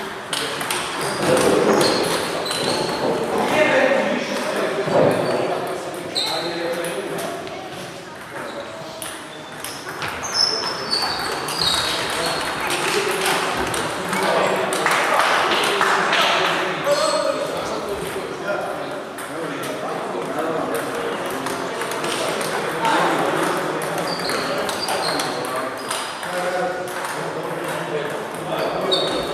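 Sports shoes squeak on the hall floor.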